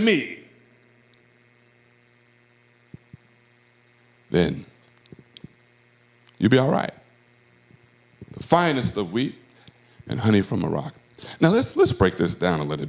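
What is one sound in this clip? A man speaks calmly into a microphone, with pauses, heard through a loudspeaker in a large room.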